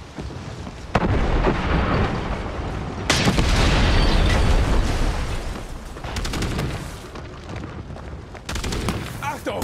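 A tank engine rumbles deeply nearby.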